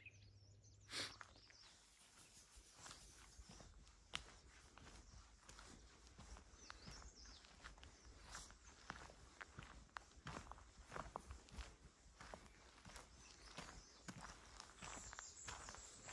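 Footsteps crunch on a gravel road.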